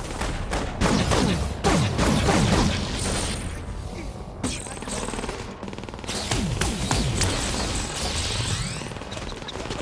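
Magic energy blasts crackle and whoosh with sweeping tones.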